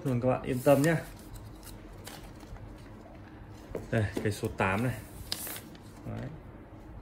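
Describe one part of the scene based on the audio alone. A plastic sleeve crinkles as it is slid off a phone.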